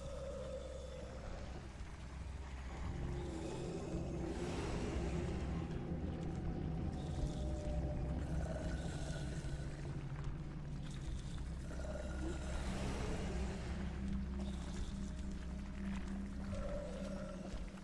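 A monster growls and groans nearby.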